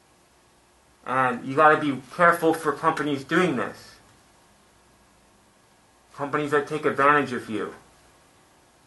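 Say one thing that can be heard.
A man speaks calmly and close by, in short bursts with pauses.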